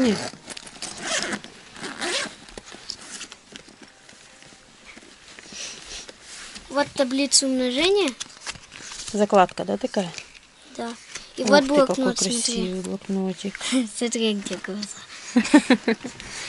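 Plastic wrappers and cards rustle as they are handled.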